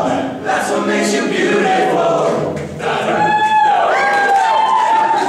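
A young man sings into a microphone, heard through loudspeakers in an echoing hall.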